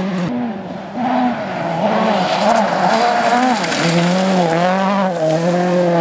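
A rally car engine roars and revs up and down as the car races past.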